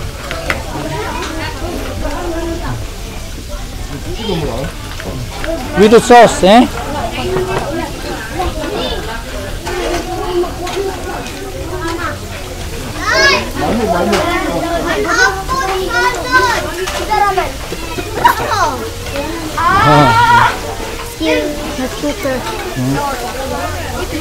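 Children talk and laugh close by.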